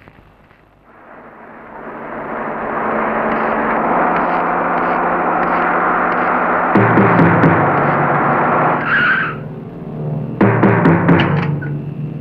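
A truck engine rumbles and grows louder as it approaches.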